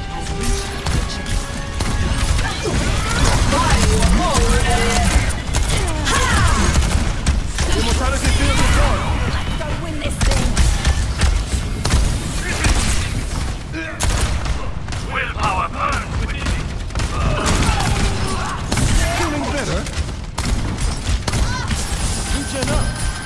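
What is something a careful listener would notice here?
A game's gun fires rapid bursts of shots.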